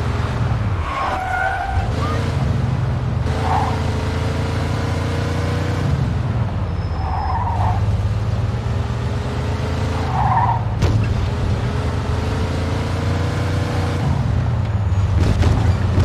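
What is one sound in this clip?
A car engine hums steadily as the car drives along, rising and falling in pitch with each gear change.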